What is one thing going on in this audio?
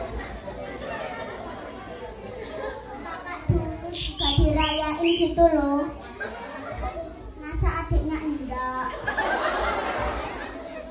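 A crowd of children and adults chatters in the background.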